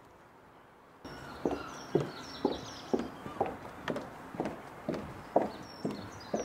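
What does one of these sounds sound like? Footsteps thud steadily on a wooden bridge.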